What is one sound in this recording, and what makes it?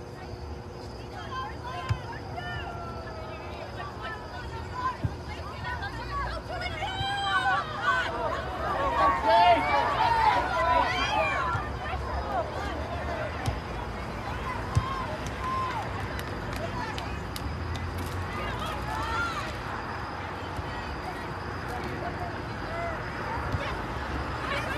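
Young women shout to one another across an open outdoor field.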